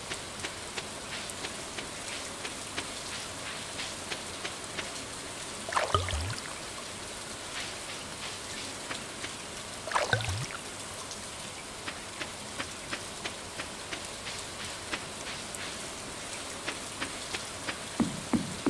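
Rain falls steadily.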